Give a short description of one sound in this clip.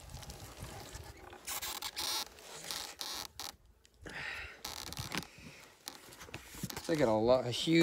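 Wooden boards scrape and knock as a hive lid is lifted.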